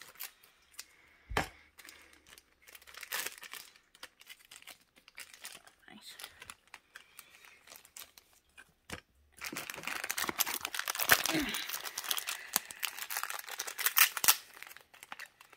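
Plastic wrapping crinkles and rustles as it is torn open.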